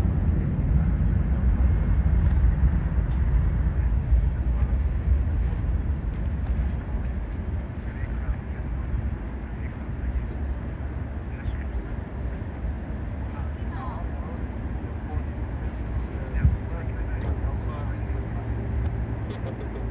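The engines of a large airliner rumble steadily as it rolls along a runway.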